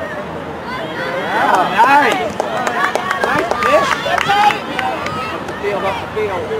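A crowd of spectators cheers and shouts loudly, then dies down.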